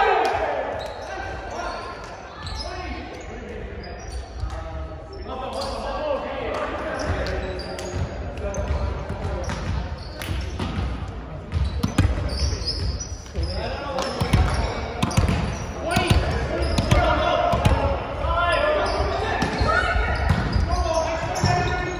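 Young men talk and call out to each other in a large echoing gym.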